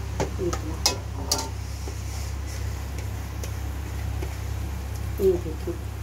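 Water pours into a pan of food.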